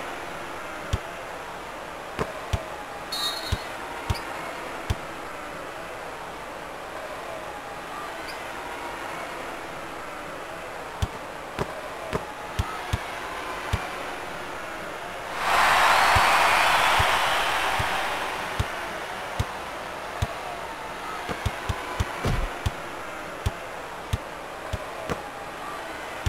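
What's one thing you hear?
A basketball bounces on a wooden court with sharp, repeated thuds.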